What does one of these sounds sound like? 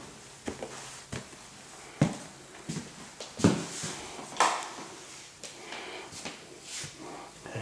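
Footsteps tap across a hard floor indoors.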